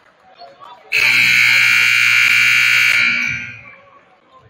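A referee's whistle blows one long, shrill blast.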